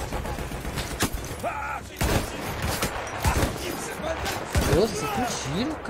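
Gunshots crack in loud, sharp bursts.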